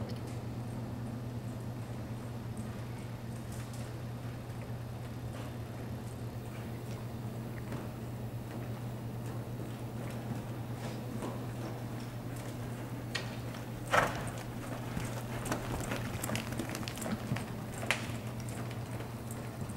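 A horse's hooves thud softly on dirt as it walks.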